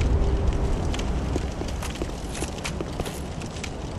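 Footsteps scrape on stone.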